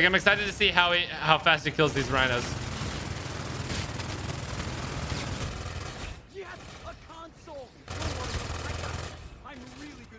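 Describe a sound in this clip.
Rapid gunfire rattles from a video game.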